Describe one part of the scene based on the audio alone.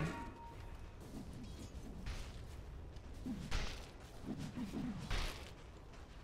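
Game spell effects crackle and thud.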